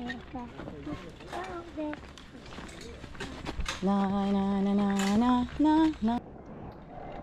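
A young child talks in a sing-song voice close by.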